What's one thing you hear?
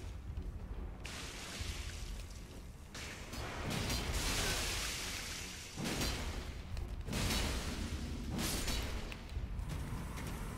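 A heavy sword swings and strikes flesh with wet, squelching thuds.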